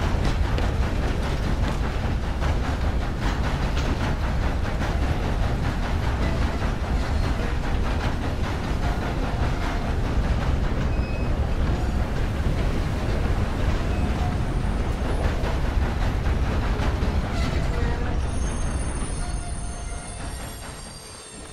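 A steam train rumbles and clatters along the tracks.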